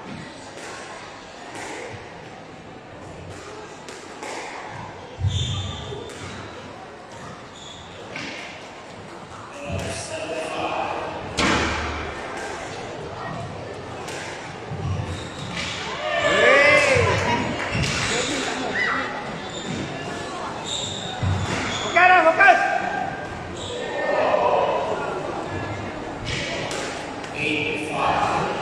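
A squash ball smacks against the walls with sharp echoing thwacks.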